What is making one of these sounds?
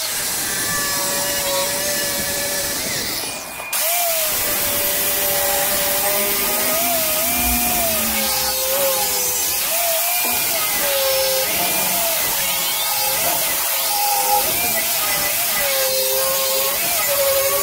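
An angle grinder whines loudly as it grinds metal, its pitch wavering under load.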